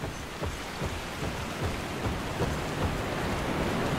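Footsteps thud on wooden planks.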